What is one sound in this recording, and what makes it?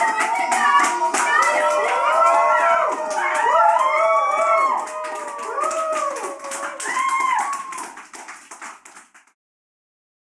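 A man sings loudly through loudspeakers.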